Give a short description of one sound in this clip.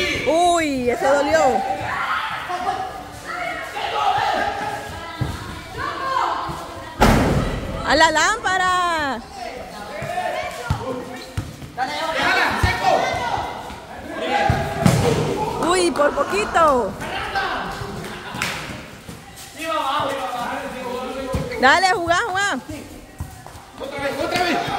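Children and young people shout and call out excitedly, close by.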